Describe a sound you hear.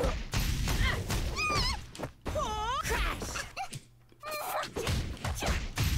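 Fire bursts with a loud whoosh.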